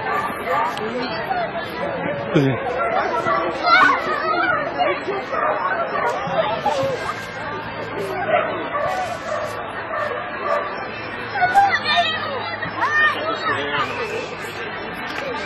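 A crowd of people chatters and calls out outdoors nearby.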